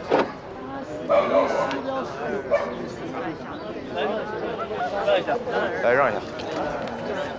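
A crowd of men murmurs and talks outdoors.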